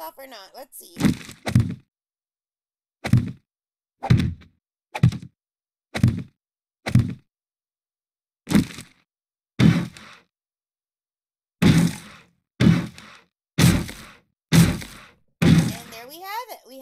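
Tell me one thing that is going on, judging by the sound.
Wooden frames knock heavily into place, one after another.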